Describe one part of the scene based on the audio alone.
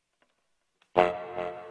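A bassoon begins to play.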